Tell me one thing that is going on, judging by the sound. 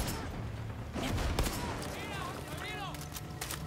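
A rifle magazine clicks out and in during a reload.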